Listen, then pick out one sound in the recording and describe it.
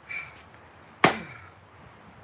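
An axe splits a log with a sharp crack.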